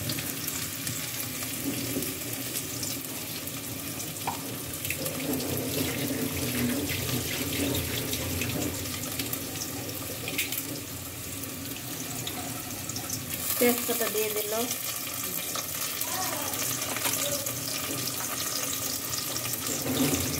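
Onions sizzle softly in a hot pot.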